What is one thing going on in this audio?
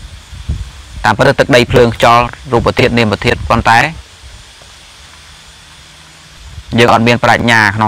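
A young man speaks calmly, close to the microphone.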